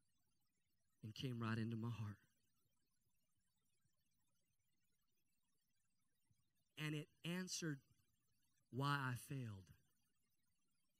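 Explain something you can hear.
A man speaks with animation into a microphone through a loudspeaker, in short bursts.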